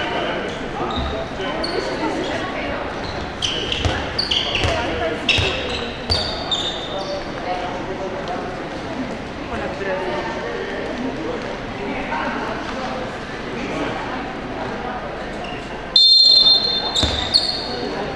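A handball bounces on the wooden floor.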